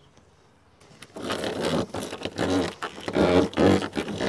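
A flexible metal conduit scrapes and rattles across a hard floor.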